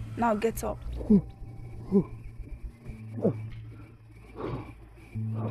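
A man groans in strain, close by.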